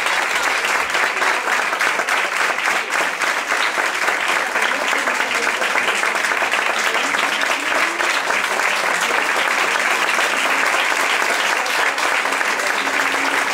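An audience applauds loudly and steadily in an echoing hall.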